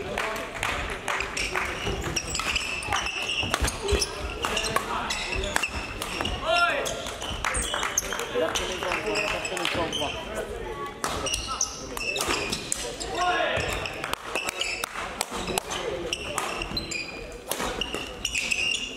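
Young people chatter and call out across the hall.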